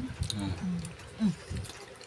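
A knife cuts through a soft fruit.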